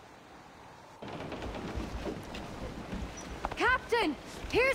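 A man shouts urgently nearby.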